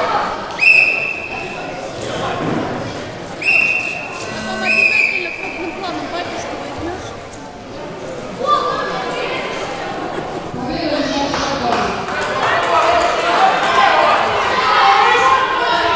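A crowd of spectators chatters and cheers in an echoing hall.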